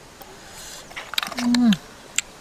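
Snail shells clink and rattle against each other as a hand picks one up.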